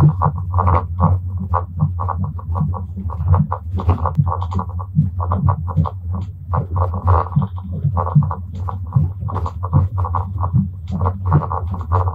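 A train hums steadily as it rolls along.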